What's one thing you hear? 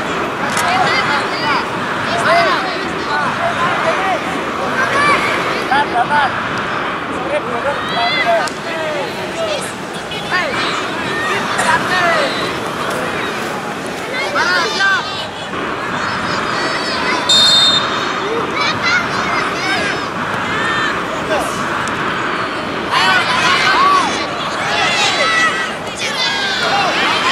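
Children shout and call out across an open field in the distance.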